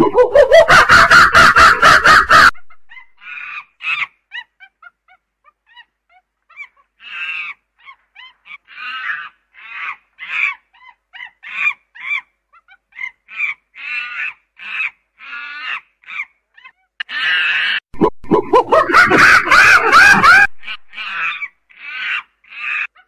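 A chimpanzee screams and hoots in loud bursts.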